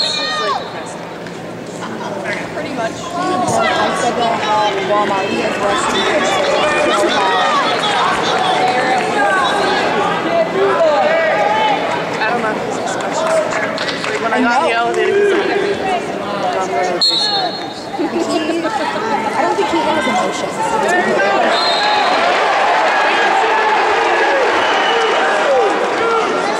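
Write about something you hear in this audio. A referee shouts calls at the wrestlers.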